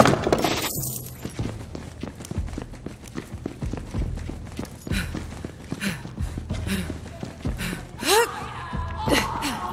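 Heavy footsteps thud steadily on a hard floor.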